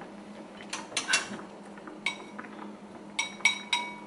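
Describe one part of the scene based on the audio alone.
Chopsticks scrape and tap against a ceramic bowl.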